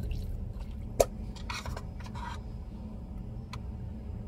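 A spoon scrapes against a glass bowl.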